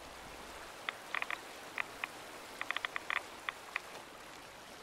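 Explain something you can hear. Footsteps crunch through dry grass and gravel.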